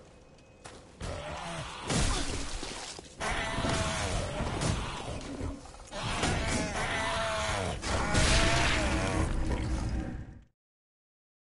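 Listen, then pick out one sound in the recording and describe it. A monstrous creature moans and groans loudly.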